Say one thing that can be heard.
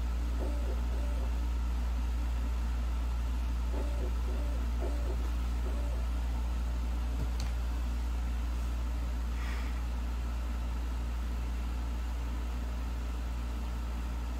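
A disc player hums with a low, steady drone.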